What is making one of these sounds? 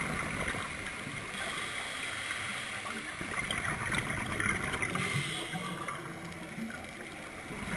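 Bubbles from a diver's breath gurgle and rush up close by underwater.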